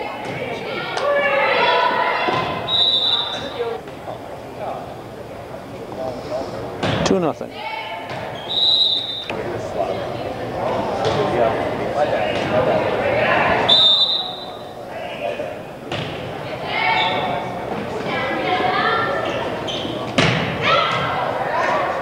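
Spectators and players shout and cheer in an echoing gym.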